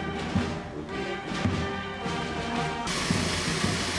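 A brass band plays with deep tubas.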